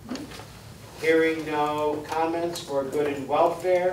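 An older man speaks calmly.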